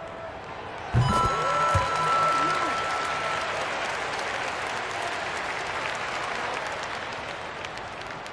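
A crowd cheers loudly after a shot.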